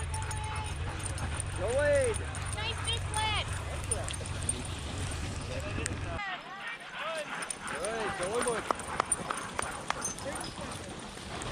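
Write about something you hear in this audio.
Sled runners hiss over packed snow.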